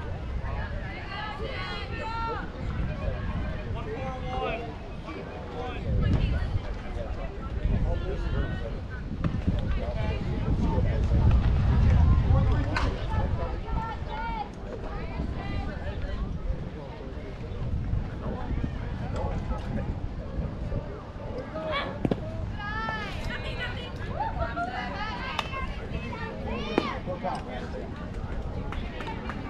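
Young girls shout and cheer from across an open field.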